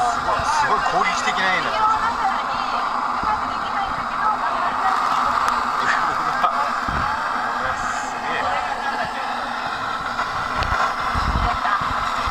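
A blowtorch flame roars.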